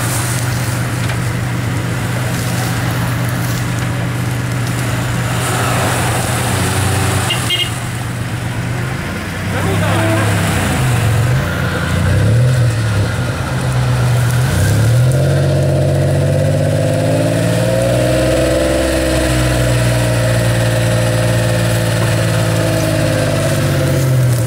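A car engine rumbles and revs up and down as it crawls through a muddy ditch.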